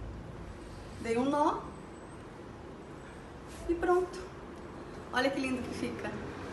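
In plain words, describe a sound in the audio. A woman speaks close by in short, lively bursts.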